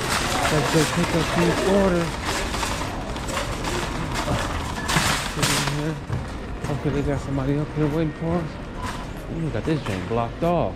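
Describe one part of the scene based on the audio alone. A shopping cart rattles and rumbles as it rolls over a hard floor.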